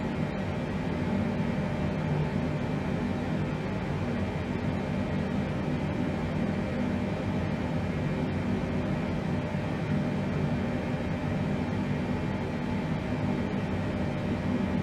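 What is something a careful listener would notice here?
A steady low hum of aircraft engines drones.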